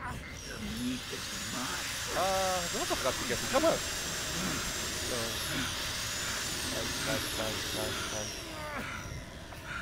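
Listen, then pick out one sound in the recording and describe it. A circular saw whirs and grinds.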